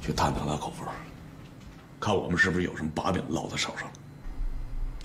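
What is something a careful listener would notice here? A man speaks firmly and close by.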